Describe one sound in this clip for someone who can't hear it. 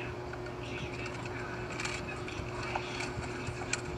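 A pen scratches lightly on a wooden block.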